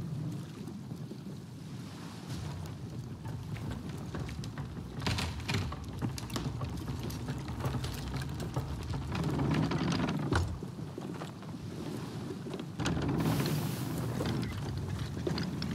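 A ship's wooden wheel creaks as it turns.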